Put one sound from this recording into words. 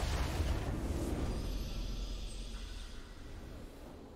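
A triumphant game fanfare plays.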